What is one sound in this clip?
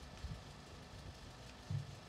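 Bare feet patter softly on a hard floor.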